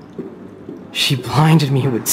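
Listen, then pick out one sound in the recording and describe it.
A young woman remarks dryly, close by.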